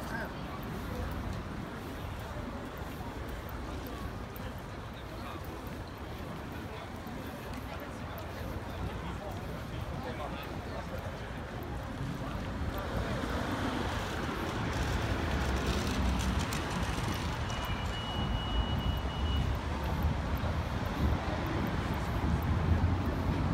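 A crowd of people murmur and chatter outdoors.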